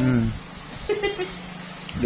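Nail clippers snip a toenail.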